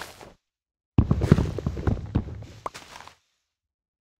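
A wooden block breaks apart with a clatter.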